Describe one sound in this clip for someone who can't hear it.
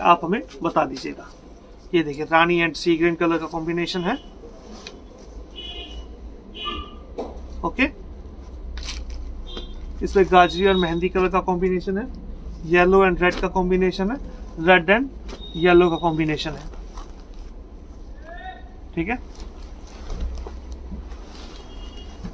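Cloth rustles softly as it is unfolded and laid down.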